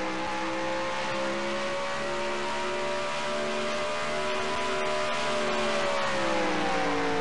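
A racing game's stock car V8 engine roars at full throttle.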